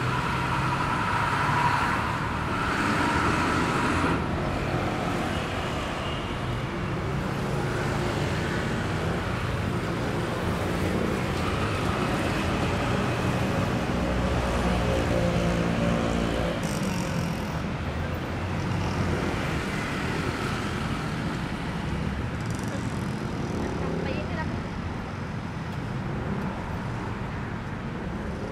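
City traffic rumbles steadily nearby, outdoors.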